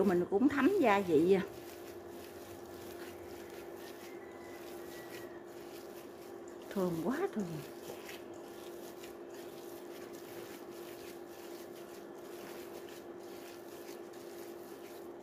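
Hands squish and knead a wet, sticky mixture in a metal bowl.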